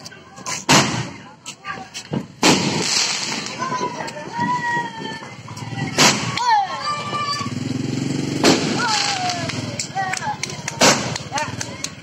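A fountain firework hisses and crackles as it sprays sparks.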